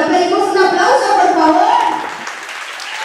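A young woman sings into a microphone, heard through loudspeakers.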